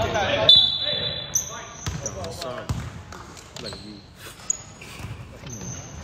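A basketball bounces on a hard floor in a large echoing hall.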